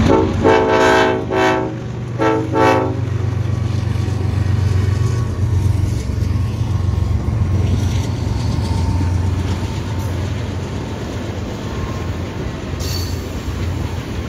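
Train wheels clatter and rumble over the tracks.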